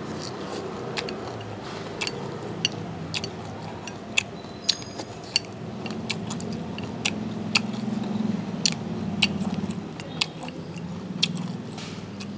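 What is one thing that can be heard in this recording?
Chopsticks tap and clink against a ceramic bowl.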